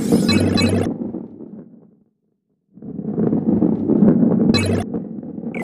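A heavy ball rolls along a wooden track with a low rumble.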